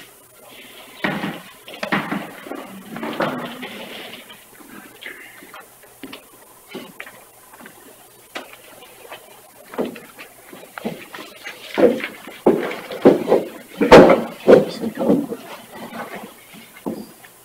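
A man speaks calmly in a room, picked up by a microphone.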